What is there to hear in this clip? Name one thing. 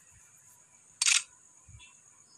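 A short game menu sound effect swooshes as a new menu opens.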